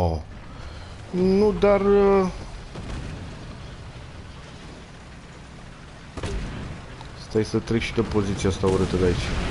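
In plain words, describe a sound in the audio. A heavy tank engine rumbles low and steady.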